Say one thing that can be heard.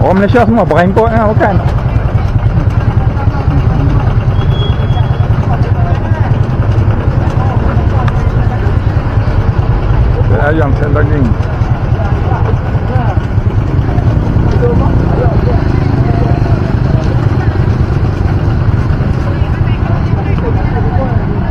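People talk nearby outdoors.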